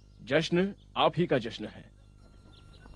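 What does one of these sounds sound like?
A man speaks loudly with emotion, close by.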